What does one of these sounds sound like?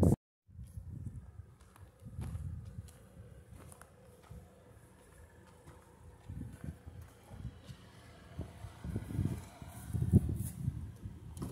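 A car rolls slowly over a dirt track, its tyres crunching on gravel.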